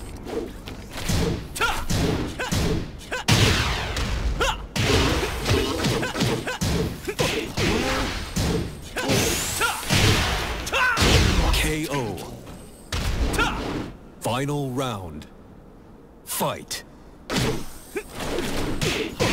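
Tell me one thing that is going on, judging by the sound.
Punches and kicks land with sharp, heavy thuds in quick bursts.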